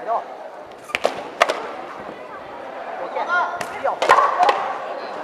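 Foam swords clack sharply against each other in a large echoing hall.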